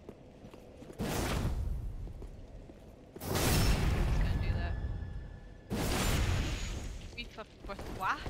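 Swords clash and whoosh in a fight.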